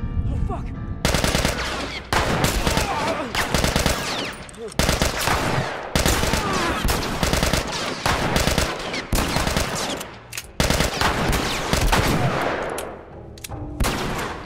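Gunshots ring out loudly and echo.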